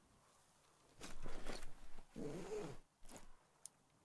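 A cloth bag rustles as it is picked up.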